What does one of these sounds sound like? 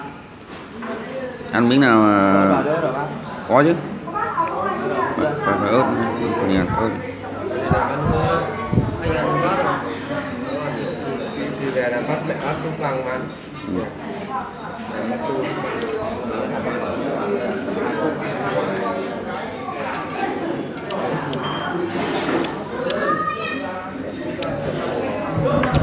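Several people talk and chatter nearby.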